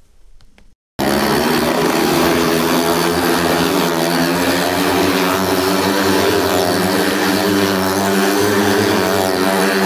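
A motorcycle engine roars loudly and steadily.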